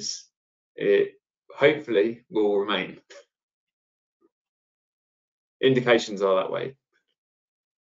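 A man speaks calmly and cheerfully over an online call, in short bursts with pauses.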